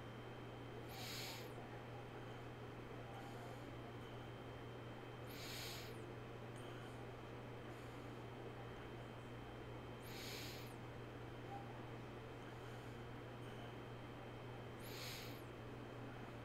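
A man breathes in slowly and deeply, close to a microphone.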